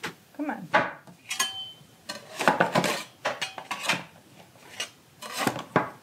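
A metal loaf pan scrapes and clatters.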